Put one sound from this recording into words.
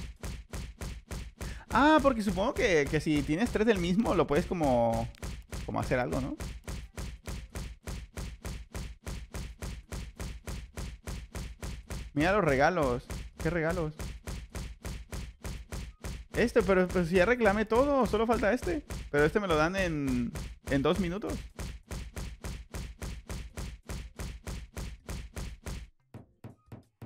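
Rapid punching thuds repeat steadily.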